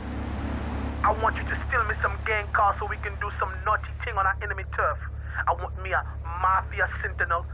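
A man speaks calmly on a phone.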